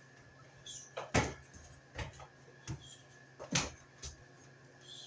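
A man climbs a ladder with clanking steps.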